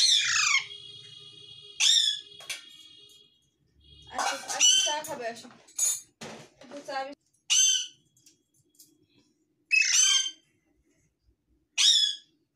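A parrot screeches loudly and repeatedly, close by.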